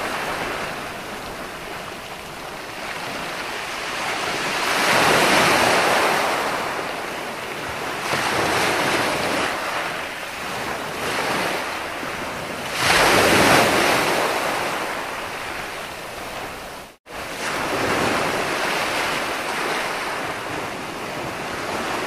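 Ocean waves crash and wash up onto a beach in surging swells.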